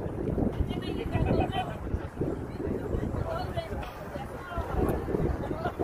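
Several young women chatter nearby outdoors.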